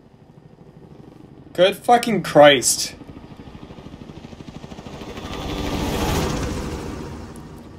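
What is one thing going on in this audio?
A helicopter's rotor thumps and roars nearby.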